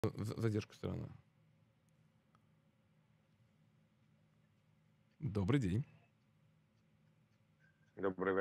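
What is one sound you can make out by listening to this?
A man speaks close to a microphone in short bursts, with pauses between.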